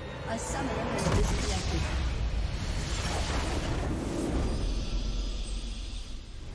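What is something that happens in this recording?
A game explosion booms and rumbles loudly.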